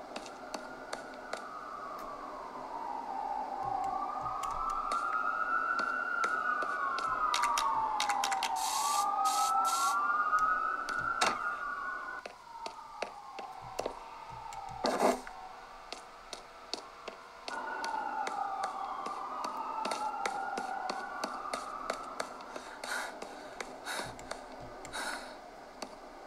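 Buttons on a game controller click softly.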